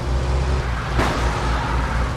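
A car crashes into another car with a metallic bang.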